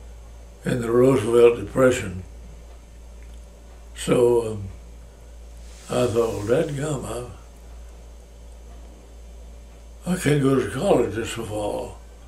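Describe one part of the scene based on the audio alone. An elderly man speaks slowly and calmly close by, in short phrases with pauses.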